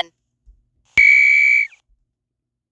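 A short electronic beep sounds.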